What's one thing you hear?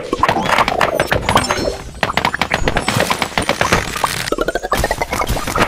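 Bright game sound effects pop and chime in quick succession.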